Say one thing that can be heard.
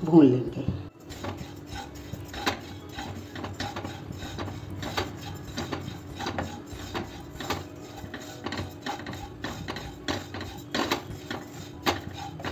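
A wooden spatula scrapes and stirs dry seeds in a pan.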